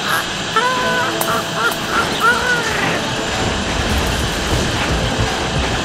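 A vacuum hose sucks with a steady rushing hiss.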